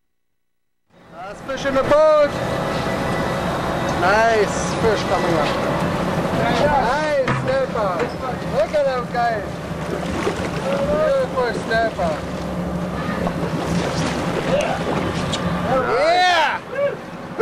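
A man shouts and whoops excitedly outdoors.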